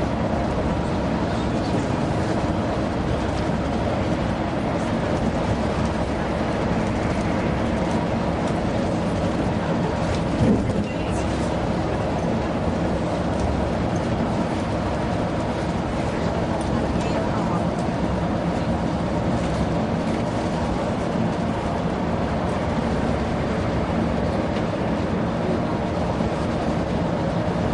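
Tyres roar steadily on the road surface.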